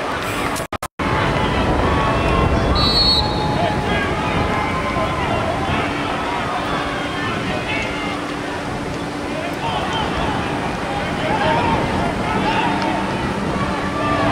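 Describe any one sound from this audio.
Young men shout across an open outdoor field.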